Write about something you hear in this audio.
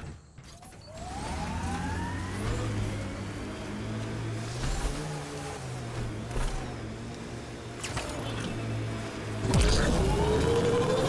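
A vehicle engine hums and revs as it drives.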